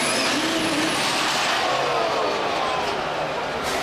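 A diesel truck engine drops in pitch and winds down.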